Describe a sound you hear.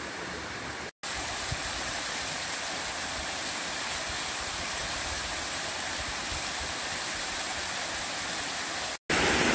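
A waterfall cascades over rocks.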